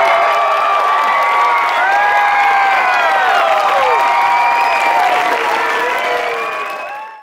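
A crowd cheers and screams loudly in a large hall, then fades.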